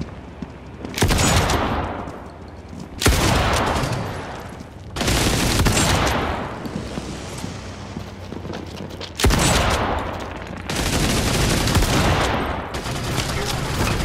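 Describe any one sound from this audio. A submachine gun fires loud bursts.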